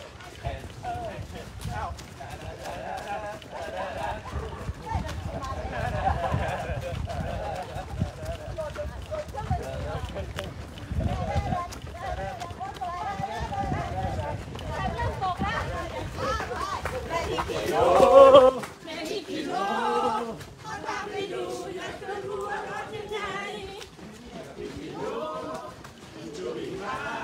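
A group of men and women chat and call out close by.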